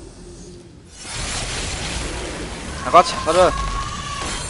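Weapons clash and slash in a fight.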